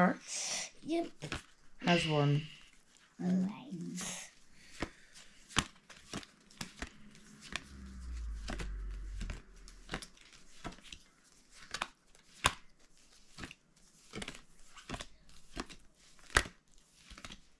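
Playing cards tap and flick as they are dealt and laid down.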